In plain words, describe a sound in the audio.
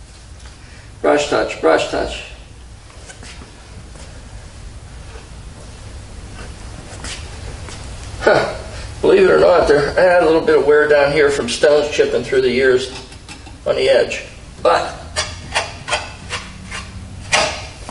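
A man talks calmly and close by, pausing between phrases.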